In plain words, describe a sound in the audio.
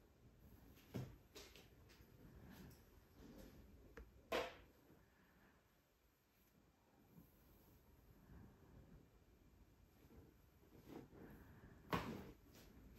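A neck cracks sharply.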